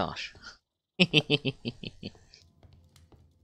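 A man laughs loudly into a close microphone.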